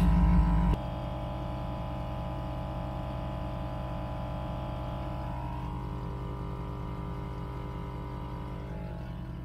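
A small air compressor hums and rattles steadily close by.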